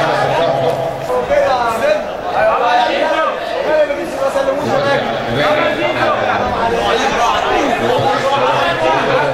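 A crowd of men shouts and cheers loudly.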